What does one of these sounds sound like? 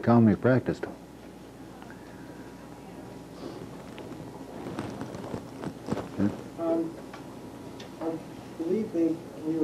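An elderly man speaks calmly and close by.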